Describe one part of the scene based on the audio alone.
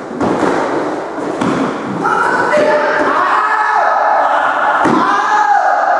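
Bare feet thud and slap on a wooden floor in an echoing room.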